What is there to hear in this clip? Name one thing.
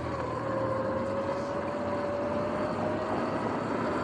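A car drives past on the road.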